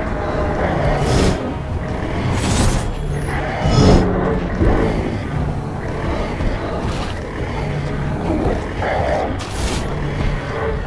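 Hissing whooshes burst out again and again.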